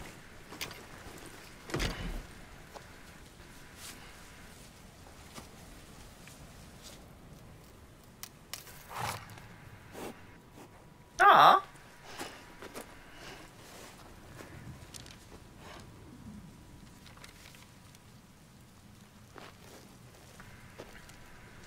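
A young man speaks briefly and quietly into a close microphone.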